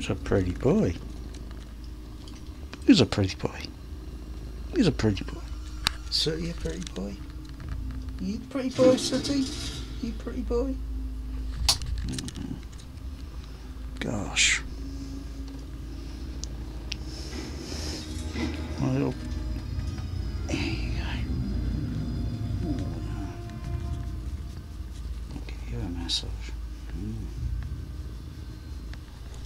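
A cat purrs steadily up close.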